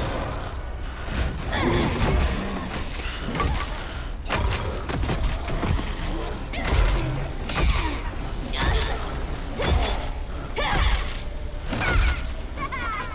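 Blows thud and crack in a fight.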